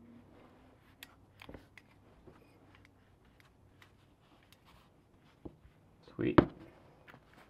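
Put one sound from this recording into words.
Small metal parts click and rattle as they are handled.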